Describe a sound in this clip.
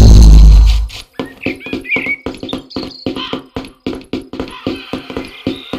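Quick footsteps patter on stone as someone runs.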